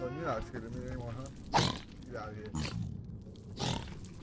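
A creature grunts and snorts nearby.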